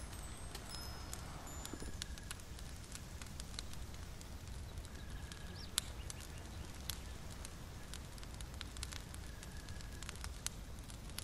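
A small fire crackles and pops softly.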